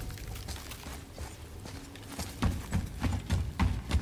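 Footsteps thump on wooden planks.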